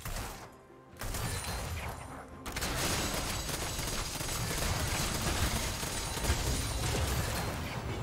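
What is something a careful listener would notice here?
Game spells burst and blows clash in a busy fight.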